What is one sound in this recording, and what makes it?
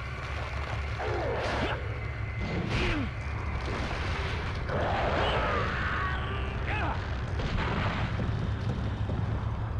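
A monster snarls and screeches.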